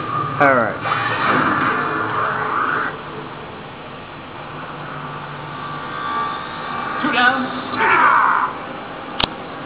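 Electronic game sound effects whoosh and swell loudly.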